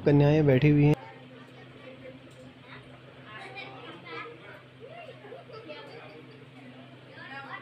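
Young girls chatter softly nearby.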